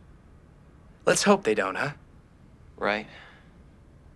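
A man speaks loudly with animation nearby.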